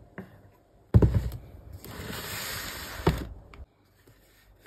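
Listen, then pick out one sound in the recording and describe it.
A plastic box rustles and taps as a hand moves it.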